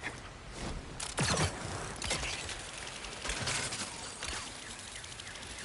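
A metal pulley whirs along a taut cable.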